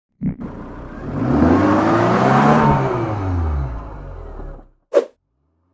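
An engine revs hard.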